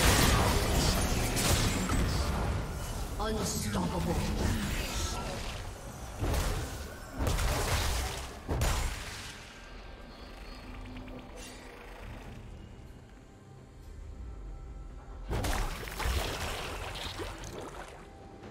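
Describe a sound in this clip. Spell effects whoosh and burst in a video game fight.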